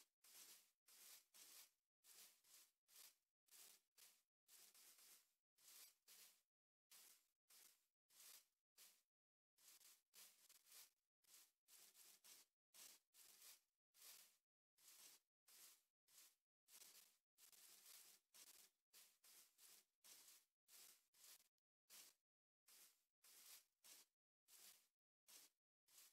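Footsteps crunch steadily on grass and dirt, very faintly.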